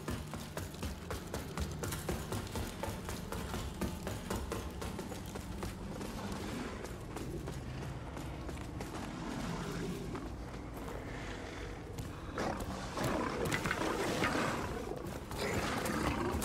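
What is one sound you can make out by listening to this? Footsteps clatter on stone floors.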